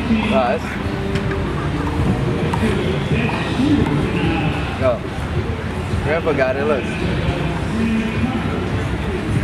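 A crowd chatters in the distance outdoors.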